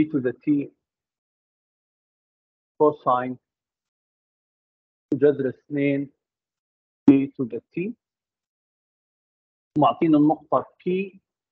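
An elderly man speaks calmly in short phrases through a microphone.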